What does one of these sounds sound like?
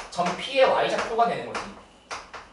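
A man speaks briefly in a lecture voice, close by.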